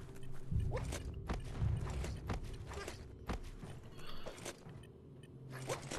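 Hands and boots scrape and knock on rock while climbing.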